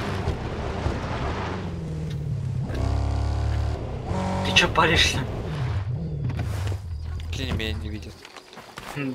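A pickup truck engine rumbles and revs as it drives over rough ground.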